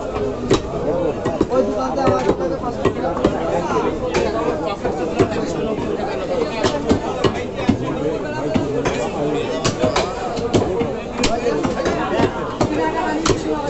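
A cleaver chops meat on a wooden block with sharp, repeated thuds.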